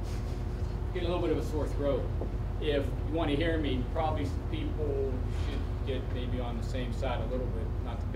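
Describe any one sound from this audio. A man speaks calmly in a room with a slight echo, some distance away.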